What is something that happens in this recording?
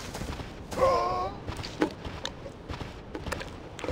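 Paws crunch through snow.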